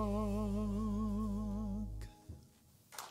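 A man sings a long held, wavering note through a microphone.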